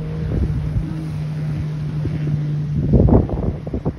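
A jet ski engine drones steadily nearby.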